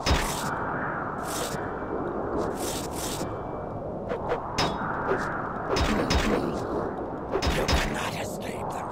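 A young man talks steadily into a microphone.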